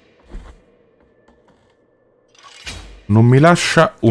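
A sword swishes through the air.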